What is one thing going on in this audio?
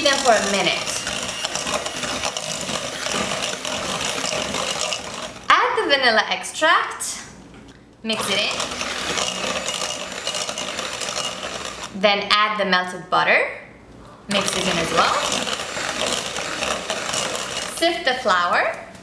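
An electric hand mixer whirs steadily, beating in a bowl.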